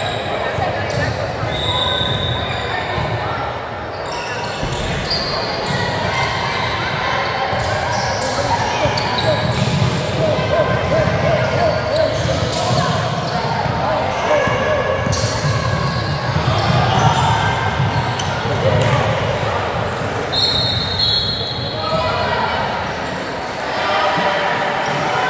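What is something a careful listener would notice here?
Young women call out to each other across a court.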